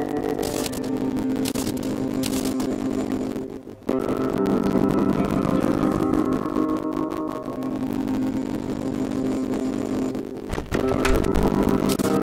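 Video game music plays steadily, briefly dropping away twice.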